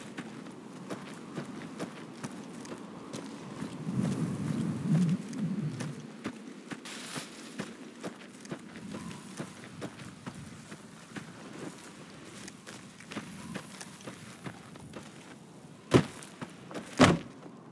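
Footsteps crunch quickly over dirt and gravel.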